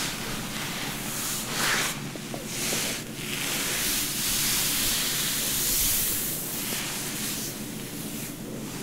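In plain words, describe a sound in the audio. Hands rub softly over hair and clothing, close up, in slow swishing strokes.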